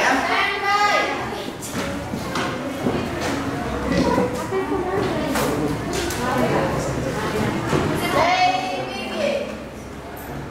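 A man speaks calmly to a group.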